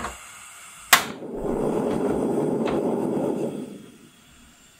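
A gas flame hisses steadily.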